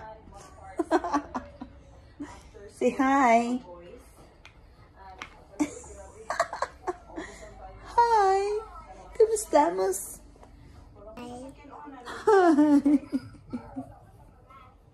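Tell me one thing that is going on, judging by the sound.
A young woman speaks and laughs close by.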